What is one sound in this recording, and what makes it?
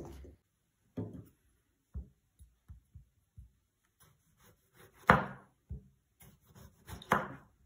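A knife cuts through a tomato and taps on a wooden board.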